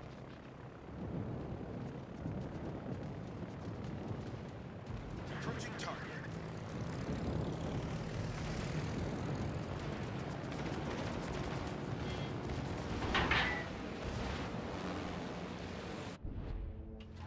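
Anti-aircraft shells burst in sharp pops around aircraft.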